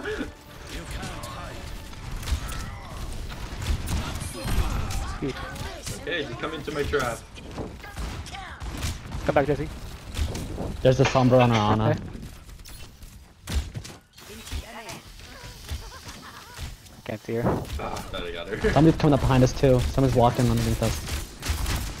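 Arrows thud into targets with sharp impacts.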